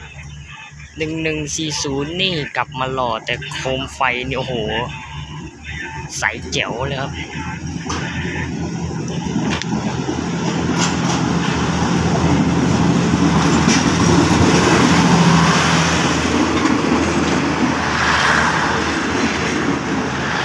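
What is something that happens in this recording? A diesel train engine drones as it approaches and passes close by.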